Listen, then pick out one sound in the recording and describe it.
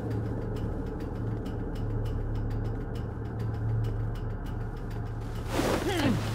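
Soft footsteps creep along at a steady pace.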